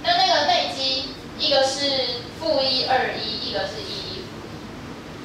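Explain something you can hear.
A woman speaks clearly to a room, close by.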